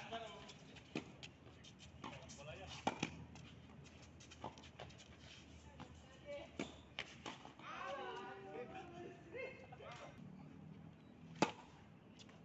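A tennis racket strikes a ball outdoors.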